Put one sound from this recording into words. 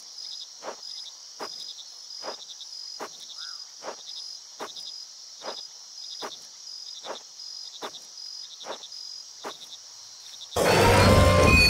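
Footsteps tread softly on earth at a steady walking pace.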